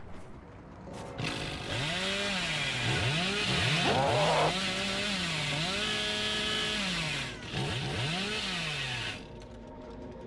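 A chainsaw engine revs up and down loudly.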